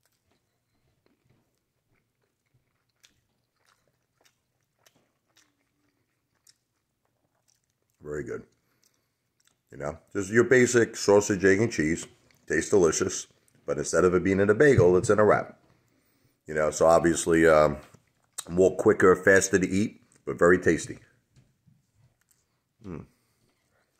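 A man chews food with soft, wet mouth sounds.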